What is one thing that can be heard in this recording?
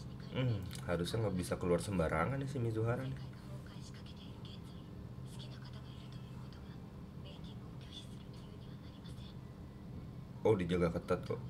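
A young man talks calmly close to a microphone.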